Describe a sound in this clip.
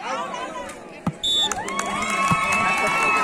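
A volleyball is struck with a dull thump.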